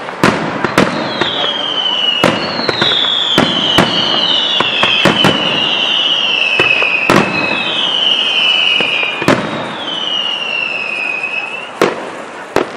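Fireworks whistle as they shoot upward.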